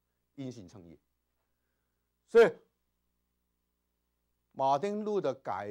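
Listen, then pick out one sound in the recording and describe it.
A middle-aged man speaks with animation, in short bursts and with pauses.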